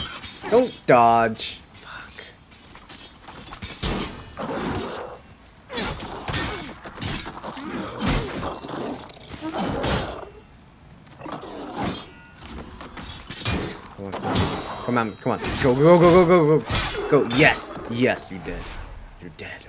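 Blades slash and strike in a fast fight.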